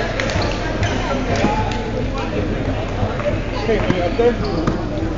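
Adult men and women talk and call out in a large echoing hall.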